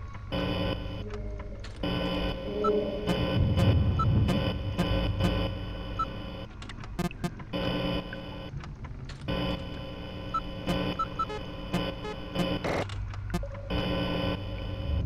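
Electric static crackles and buzzes steadily.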